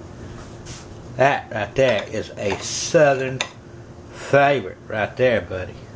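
A spatula spreads filling across bread with a soft scraping.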